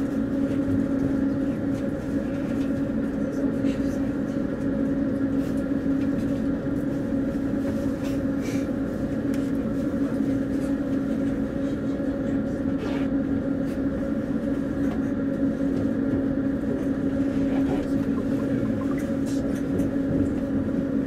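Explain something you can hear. A train's motor hums steadily while the train runs along the track.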